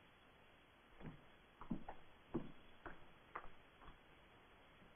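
Heavy footsteps thud on a wooden floor, walking away.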